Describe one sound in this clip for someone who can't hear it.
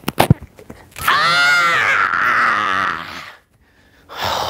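A young man screams loudly close by.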